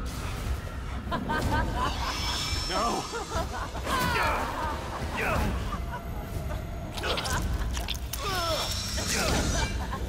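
A man cries out and grunts in distress, close by.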